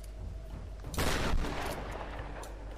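A gunshot cracks and echoes.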